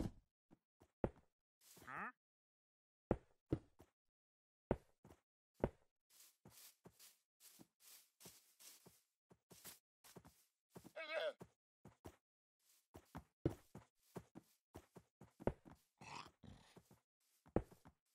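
Stone blocks land with short, dull thuds as they are set in place.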